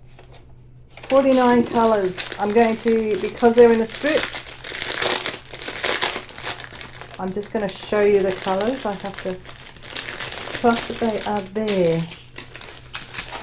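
Plastic packaging crinkles as it is handled.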